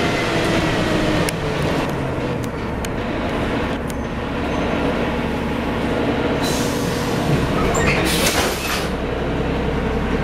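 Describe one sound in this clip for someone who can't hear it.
The bus rattles and creaks as it moves.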